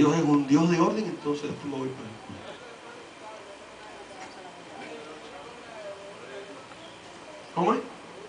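A middle-aged man speaks with animation into a microphone, heard through loudspeakers in a large echoing hall.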